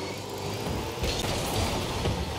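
A ball thumps against a car.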